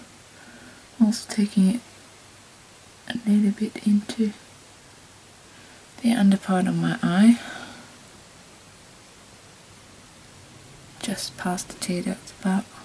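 A woman talks calmly and close to a microphone, in short bursts.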